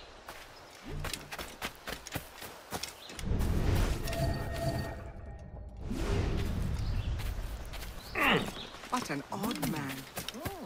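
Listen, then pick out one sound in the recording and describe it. Footsteps run over dirt and through grass.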